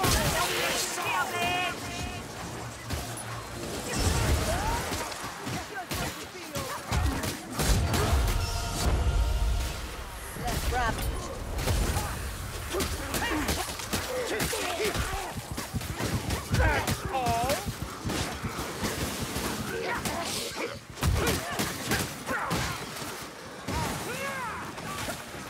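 Swords clash and slash into flesh again and again.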